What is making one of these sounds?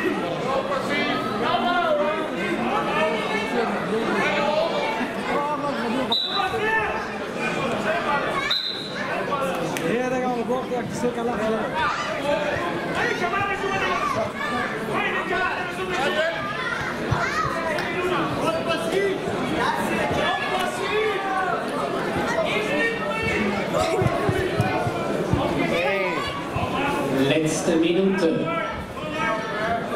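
A crowd of spectators chatters in an echoing hall.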